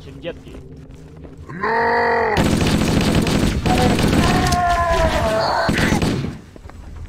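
Alien creatures screech and cry out.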